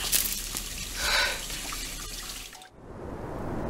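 A woman speaks in a strained, upset voice close by.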